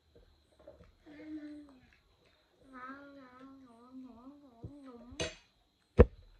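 A young boy sings a playful melody up close.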